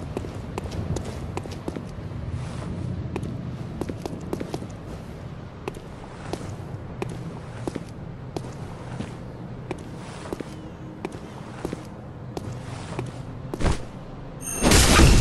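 Footsteps thud steadily on stone steps and paving.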